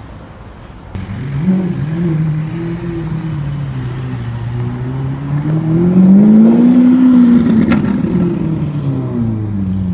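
A sports car engine roars loudly as the car pulls away, revving up and down.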